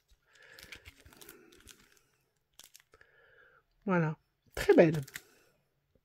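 Plastic card sleeves crinkle softly as they are handled.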